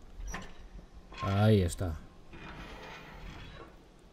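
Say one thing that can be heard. A heavy metal safe door swings open.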